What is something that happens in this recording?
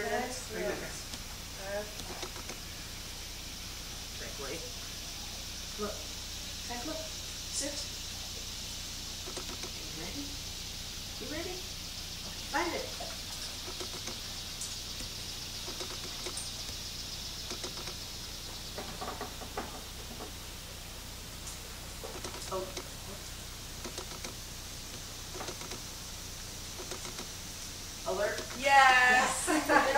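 A woman speaks calmly and gives instructions to a dog, a short way off.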